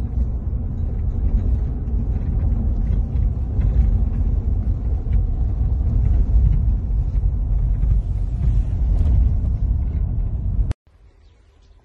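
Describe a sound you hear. A car engine rumbles steadily inside a moving car.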